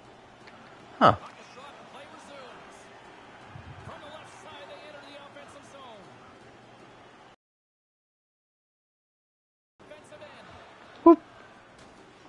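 A hockey stick smacks a puck.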